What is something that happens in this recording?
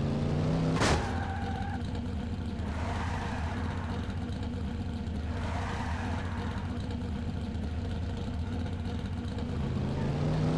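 A car engine idles low.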